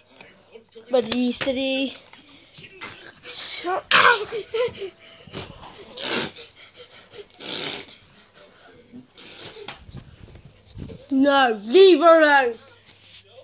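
A young boy speaks and squeals close by.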